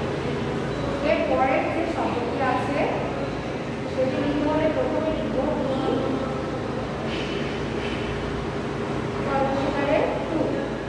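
A marker squeaks on a whiteboard as it writes.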